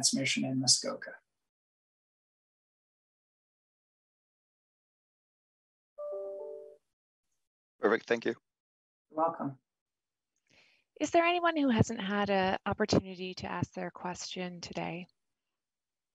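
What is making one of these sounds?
A middle-aged man speaks calmly into a microphone, in short bursts with pauses.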